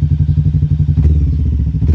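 A motorcycle engine revs briefly.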